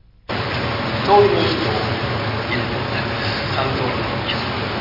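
A man speaks calmly to an audience in a large echoing hall.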